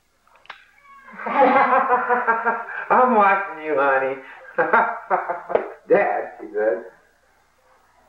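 A man shouts loudly and excitedly up close.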